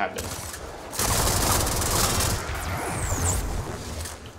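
Rapid gunfire crackles and rattles.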